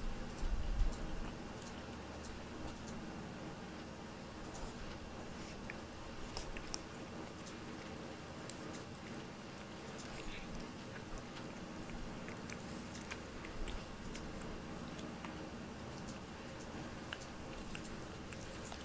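A cat licks its fur with soft, quick wet clicks close by.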